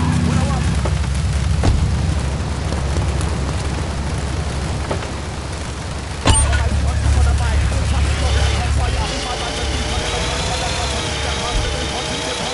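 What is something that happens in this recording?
Rain falls steadily and hisses.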